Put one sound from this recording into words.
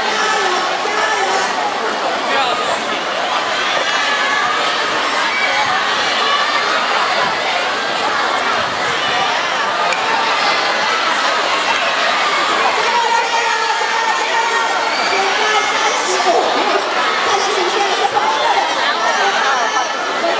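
A large crowd of schoolchildren cheers and shouts outdoors.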